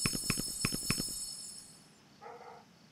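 A bright victory jingle chimes with a few sharp hits, then fades.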